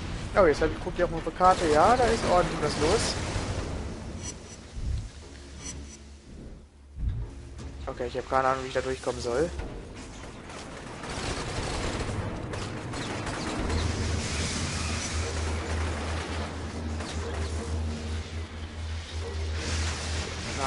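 Electric bolts crackle and zap in bursts.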